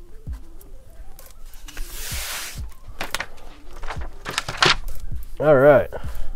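Plastic sheeting rustles as hands smooth it down.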